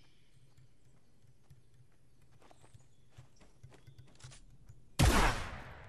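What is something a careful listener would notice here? Footsteps patter on a hard floor.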